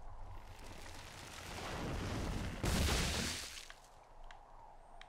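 A tree crashes heavily to the ground.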